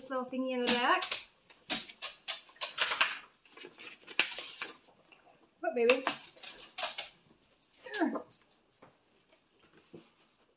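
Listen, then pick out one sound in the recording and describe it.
Paper rustles and crinkles as an envelope and card are handled.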